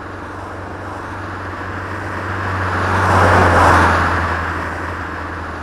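A car passes by, rising and then fading.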